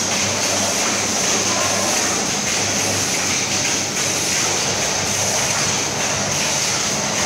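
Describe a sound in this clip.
Packaging machines hum and whir.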